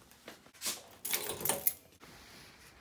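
Keys jingle.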